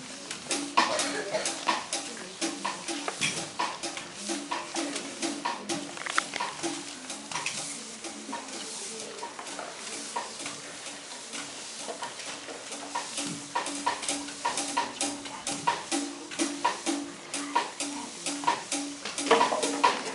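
Brooms knock and sweep rhythmically on a hard floor in an echoing hall.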